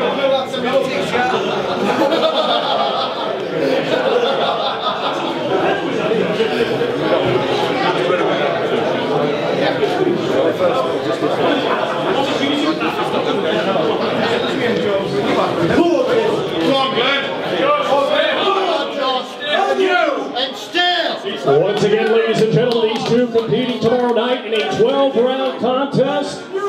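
A crowd of men chatters loudly all around.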